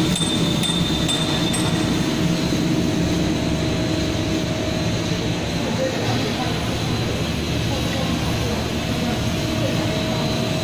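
Machinery hums steadily in a large echoing hall.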